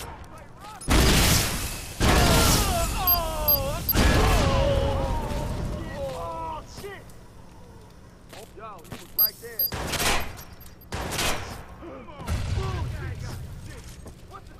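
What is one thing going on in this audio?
Explosions boom loudly and echo.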